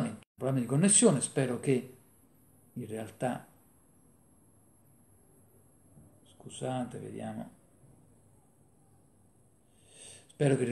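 A middle-aged man speaks calmly over an online call, pausing between phrases.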